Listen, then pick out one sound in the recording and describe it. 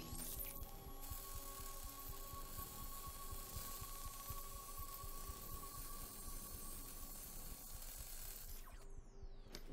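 A cutting torch hisses steadily.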